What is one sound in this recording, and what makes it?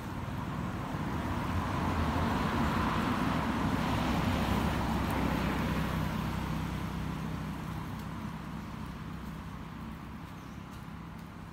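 A car passes by on a nearby road and fades away.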